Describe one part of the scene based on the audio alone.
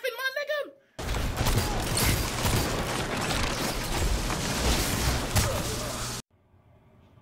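Gunfire rattles rapidly with sharp shots.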